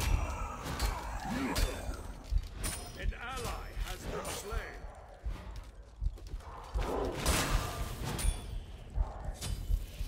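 Video game spell effects whoosh and crackle in a fight.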